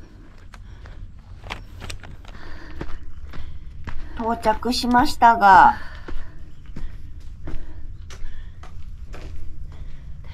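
Footsteps crunch on dry leaves and gravel.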